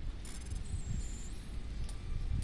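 Short electronic beeps chirp rapidly.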